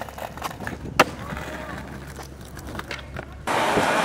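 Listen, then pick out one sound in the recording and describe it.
Skateboard wheels roll over rough pavement.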